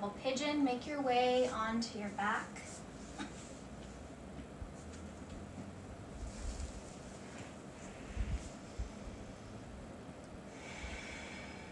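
Bodies shift and thump softly on a mat.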